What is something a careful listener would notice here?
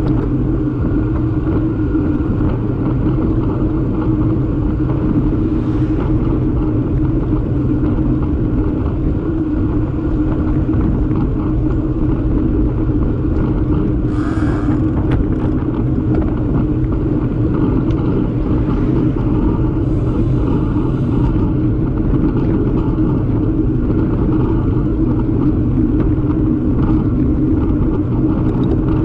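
Wind buffets loudly and steadily outdoors.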